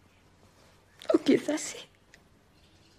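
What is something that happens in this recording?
A woman sobs close by.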